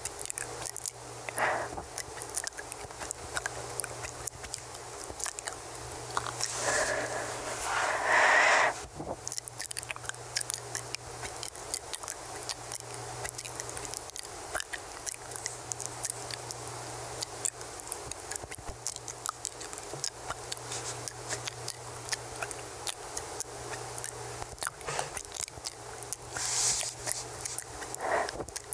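Soft mouth clicks and lip sounds crackle close to a microphone.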